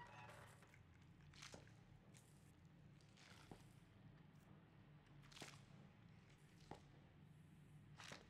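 High-heeled footsteps click on a hard floor.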